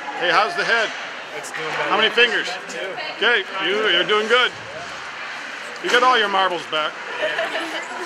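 Young people talk and laugh nearby in a large echoing hall.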